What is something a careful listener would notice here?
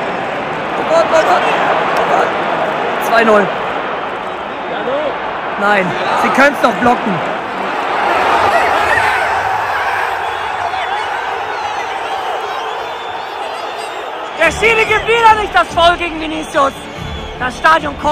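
Nearby fans shout and cheer excitedly close by.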